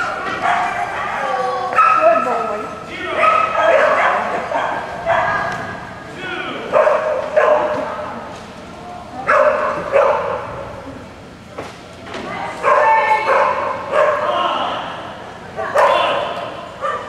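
A woman calls out commands loudly, echoing in a large hall.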